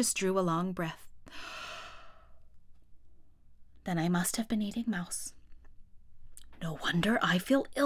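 A young woman speaks calmly and expressively into a nearby microphone.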